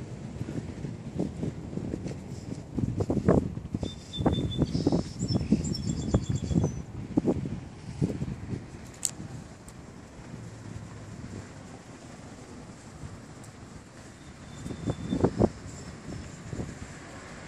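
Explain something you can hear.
Wind blows outdoors in gusts.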